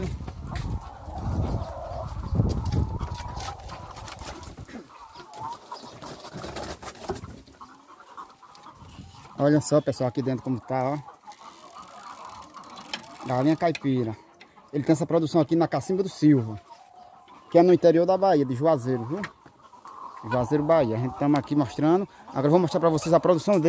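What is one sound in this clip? Chickens cluck and squawk nearby.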